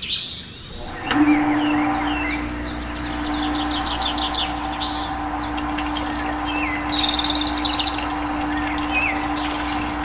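A small electric motor hums steadily.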